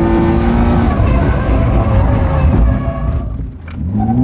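A car engine runs with a steady rumble.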